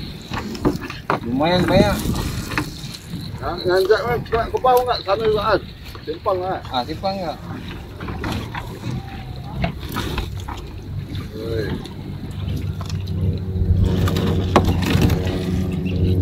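Water drips and splashes from a net into a river.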